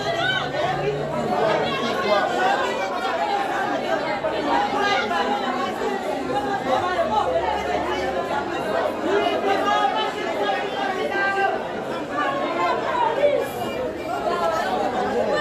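A crowd of men and women talk and shout over one another close by.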